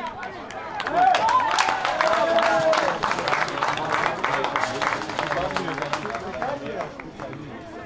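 A crowd of spectators cheers and claps outdoors.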